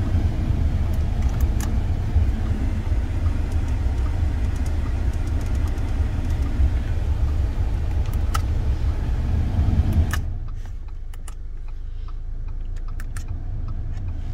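Plastic buttons on a car's climate control panel click under a fingertip.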